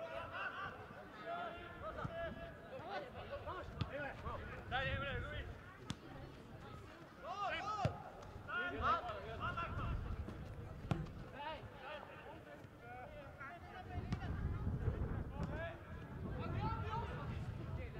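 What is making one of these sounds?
Young men shout to each other across an open outdoor football pitch.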